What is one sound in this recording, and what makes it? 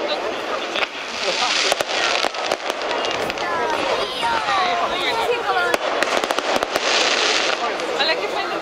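Fireworks hiss and whoosh as they shoot up.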